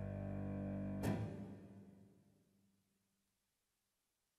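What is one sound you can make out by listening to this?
A piano plays a sustained chord that ends with a final struck chord and rings out, fading away.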